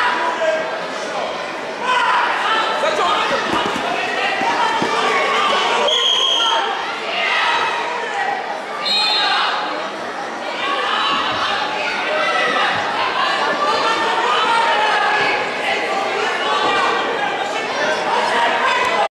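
A crowd of people talks and shouts in a large echoing hall.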